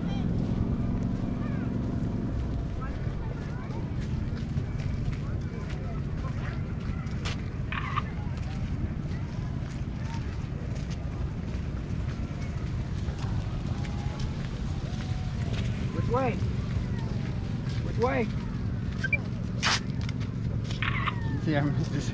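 Footsteps crunch on a dry dirt path.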